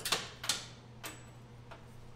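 Metal parts clank against a metal table.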